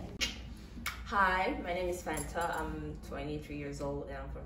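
A young woman speaks calmly and clearly into a microphone.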